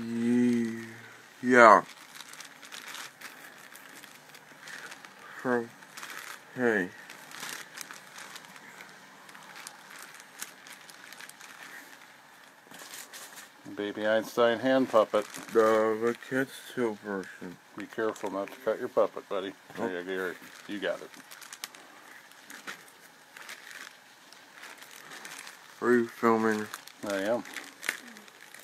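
A plastic bag crinkles and rustles in handling.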